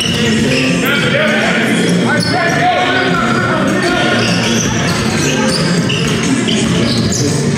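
Young men shout to each other during a game.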